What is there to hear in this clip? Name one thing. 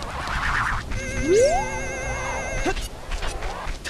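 A bright magical chime rises and warbles.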